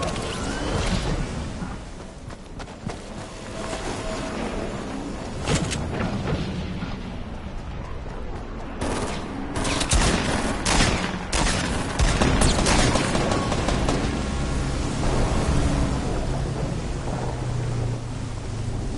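Wind rushes loudly past a figure falling through the air.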